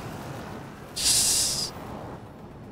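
A spacecraft engine hisses with a rushing thrust.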